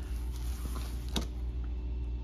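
A plastic sleeve crinkles as a hand lifts it.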